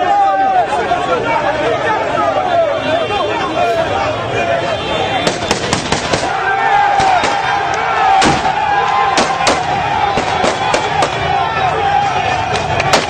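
A large crowd shouts and chants loudly outdoors.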